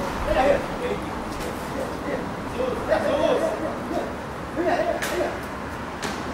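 A man thumps his hands against a large glass pane.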